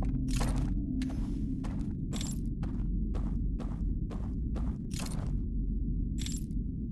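Footsteps rustle slowly through grass.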